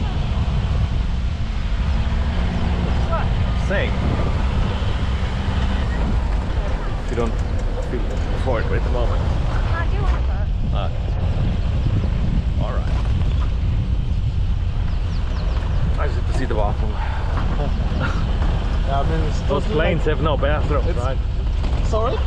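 Tyres roll and crunch over a dirt track.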